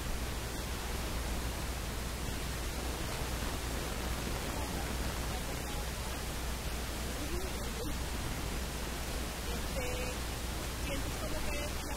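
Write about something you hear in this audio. A woman answers calmly into a microphone.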